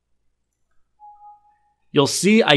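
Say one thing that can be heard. A computer alert chime sounds once.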